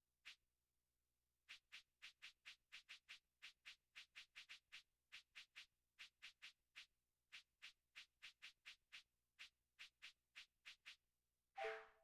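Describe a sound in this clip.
Short menu clicks tick rapidly, one after another.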